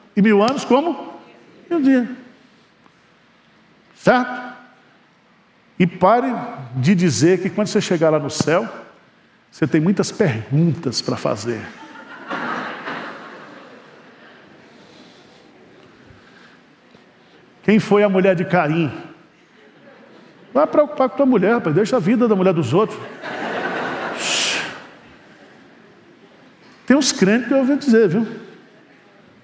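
A middle-aged man preaches with animation through a microphone, with pauses between phrases.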